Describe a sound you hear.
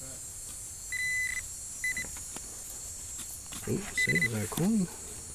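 A metal detector beeps in short, high tones.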